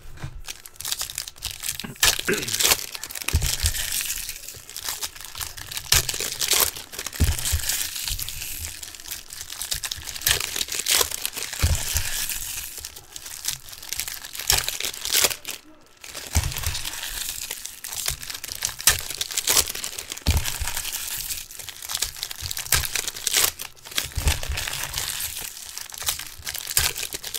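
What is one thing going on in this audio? Foil wrappers crinkle and tear as they are ripped open.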